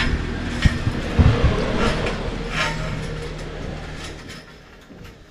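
A metal frame with wire mesh scrapes and rattles on the ground.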